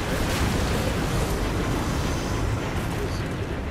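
Footsteps splash quickly through shallow water.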